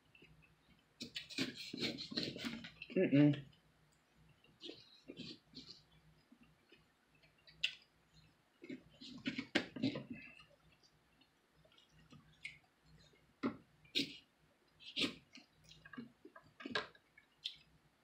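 A knife scrapes and cuts through the skin of a fruit.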